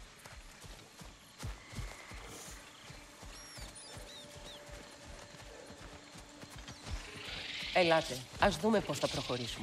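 Heavy footsteps tread steadily on soft forest ground.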